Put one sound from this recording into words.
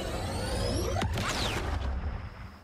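Laser shots zap with falling whines.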